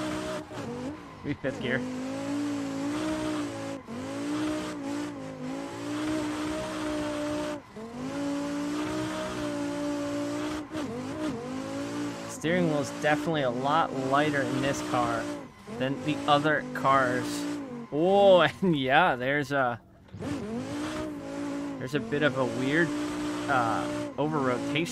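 A racing car engine revs hard and changes pitch through the corners.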